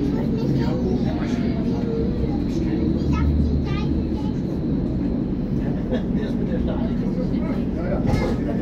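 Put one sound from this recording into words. Train brakes squeal faintly as the train slows into a station.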